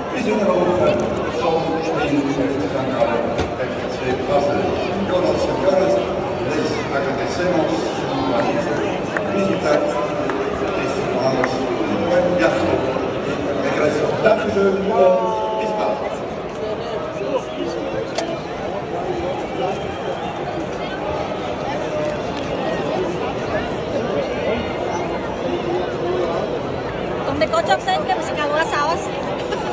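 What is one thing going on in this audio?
A crowd of people chatters all around in a large open stadium.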